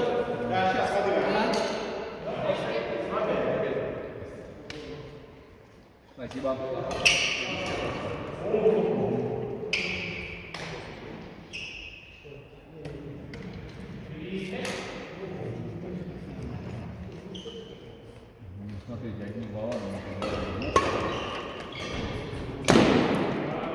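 Badminton rackets hit a shuttlecock with sharp pops in a large echoing hall.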